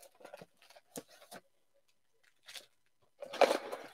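A stack of card packs is set down with a soft thump.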